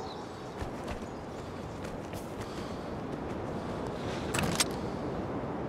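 Footsteps crunch on gravel and dirt.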